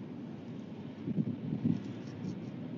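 An owl shifts and rustles in its nest close by.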